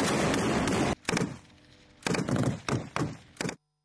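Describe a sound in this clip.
A rifle fires sharp shots in quick bursts, echoing outdoors.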